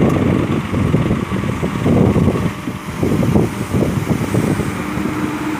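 Gravel and dirt rumble and slide out of a dump truck bed.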